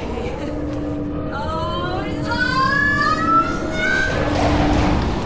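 An electric whine rises quickly in pitch.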